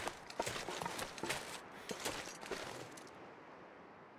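Footsteps crunch through deep snow.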